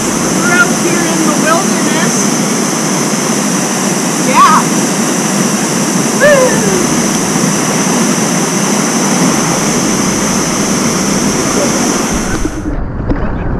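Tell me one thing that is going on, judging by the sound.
A waterfall rushes steadily nearby.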